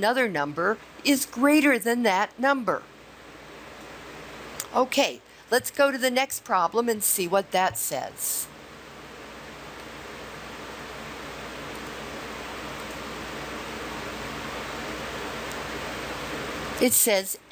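A woman speaks calmly into a close microphone, explaining.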